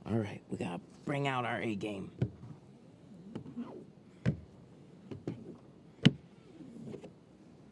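A plastic squeegee scrapes and squeaks along a window.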